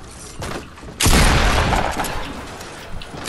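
A wooden wall snaps into place with a loud clatter.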